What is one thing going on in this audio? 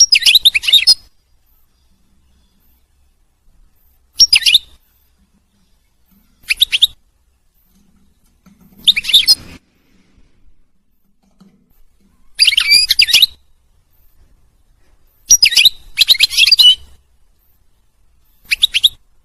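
A small bird sings in short, bright, twittering bursts close by.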